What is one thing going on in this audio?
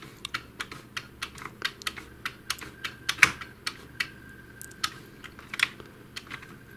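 Plastic rollers turn with rapid light clicking.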